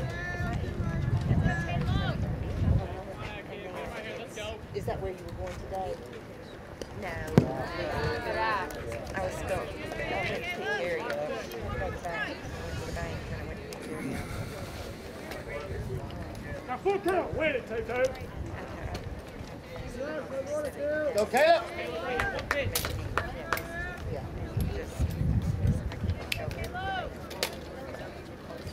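Young men call out and chatter outdoors.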